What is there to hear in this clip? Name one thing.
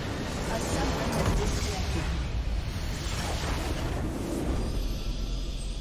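A large structure bursts apart with a loud explosion.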